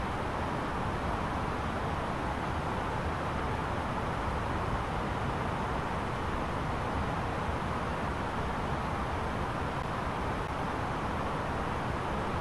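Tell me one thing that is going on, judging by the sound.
A jet airliner's engines and rushing air roar steadily.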